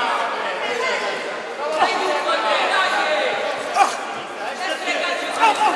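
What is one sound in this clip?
A crowd of spectators chatters and shouts in a large echoing hall.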